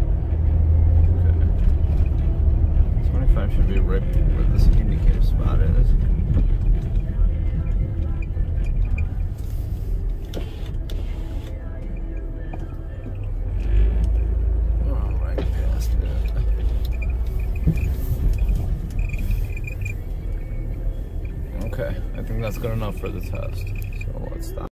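A car engine rumbles steadily as the car drives along.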